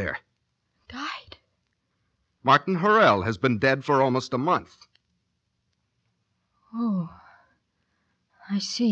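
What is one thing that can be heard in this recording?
A woman speaks with emotion into a microphone, in short bursts with pauses.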